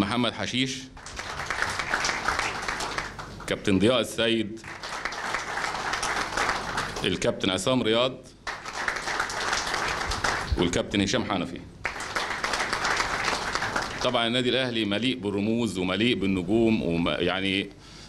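A man speaks through a microphone in short phrases.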